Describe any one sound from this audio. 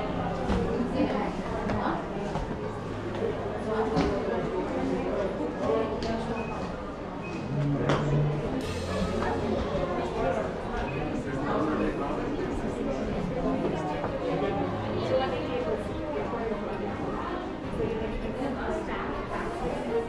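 A crowd of visitors chatters in an echoing indoor hall.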